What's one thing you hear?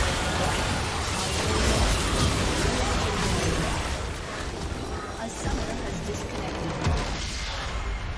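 Spell effects crackle and boom in a loud, busy battle.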